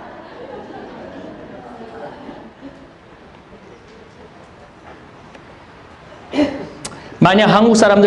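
A middle-aged man speaks quietly into a microphone, then suddenly raises his voice loudly.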